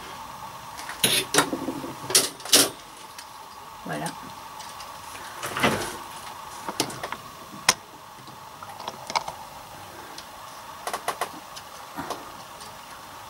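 Plastic and metal parts of a knitting machine click and clack.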